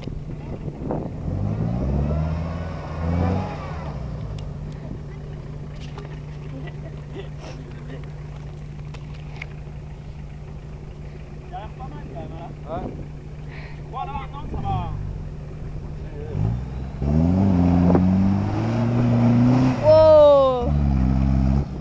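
A vehicle engine rumbles steadily nearby.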